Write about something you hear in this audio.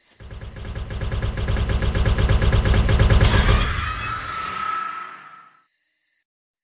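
A loud, harsh screech blares and then cuts off.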